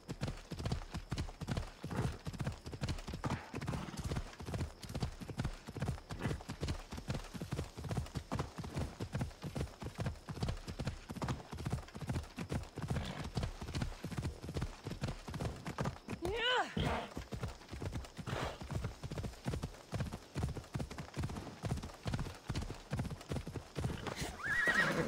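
A horse gallops with quick, steady hoofbeats.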